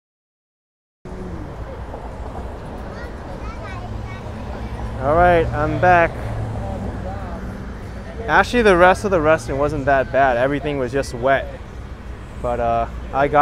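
Traffic hums steadily on a nearby street outdoors.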